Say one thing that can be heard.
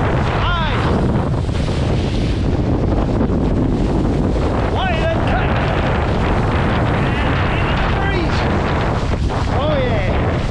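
Water splashes and rushes under a board skimming across choppy waves.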